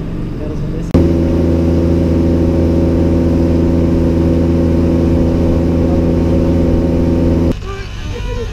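An outboard motor drones steadily at high speed.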